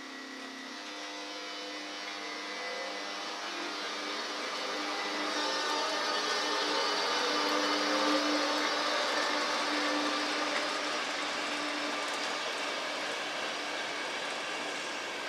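An electric locomotive hums steadily as it draws a train slowly past.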